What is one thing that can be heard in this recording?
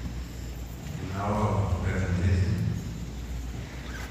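A man speaks briefly and calmly in a large echoing hall.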